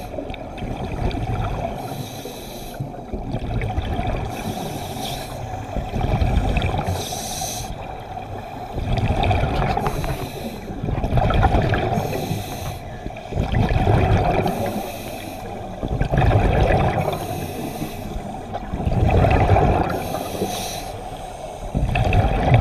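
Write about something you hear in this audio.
Exhaled air bubbles from a scuba diver gurgle and rumble underwater.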